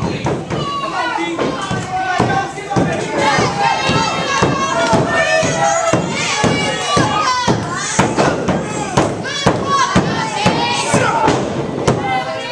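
Bodies slam onto a wrestling mat with loud thuds.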